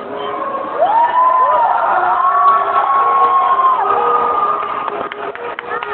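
A young woman sings into a microphone over loudspeakers in a large echoing hall.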